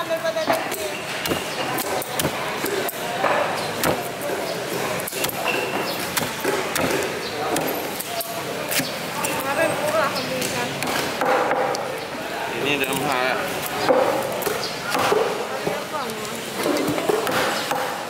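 A knife chops and scrapes through fish on a wooden block.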